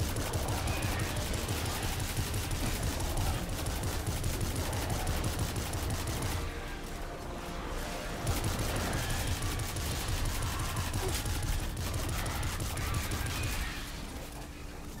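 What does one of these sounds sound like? Rapid gunfire rattles and booms in quick bursts.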